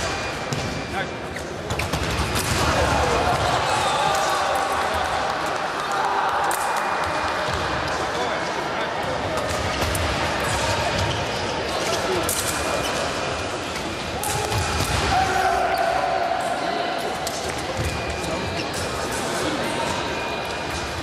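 Sabre blades clash and clatter in a large echoing hall.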